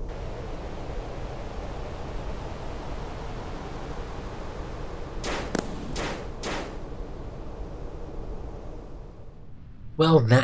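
A rocket engine roars steadily and slowly fades.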